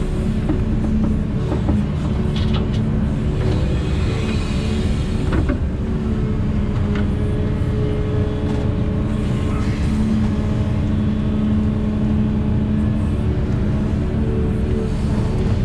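Dirt and stones tumble from a bucket into a truck bed.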